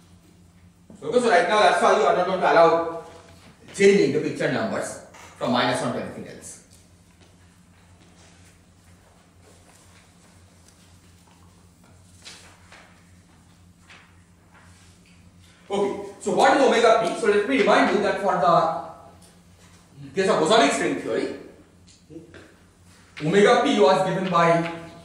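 A man lectures calmly, heard through a microphone.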